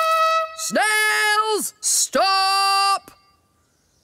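A small horn toots loudly several times.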